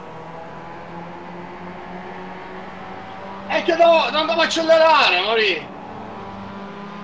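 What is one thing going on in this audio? A racing car engine hums steadily at a constant pitch.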